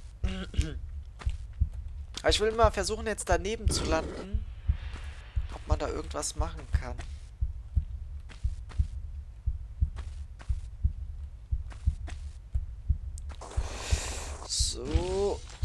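Footsteps patter quickly on a hard stone floor.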